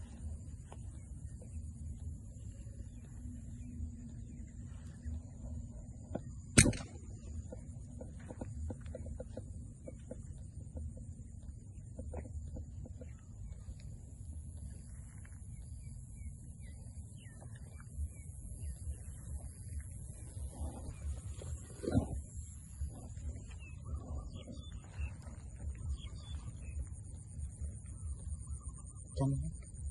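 Wind blows across open ground outdoors.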